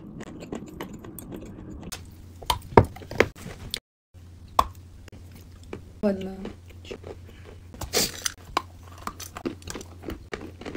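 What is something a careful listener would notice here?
Young women chew and crunch food close by.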